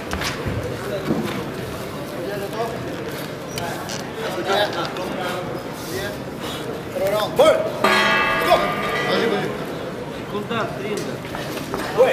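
A man speaks loudly and firmly in a large echoing hall.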